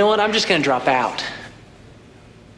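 A man speaks with urgency.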